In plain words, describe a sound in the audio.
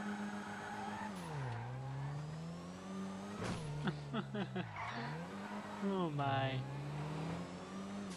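A car engine revs up and down as the car drives off.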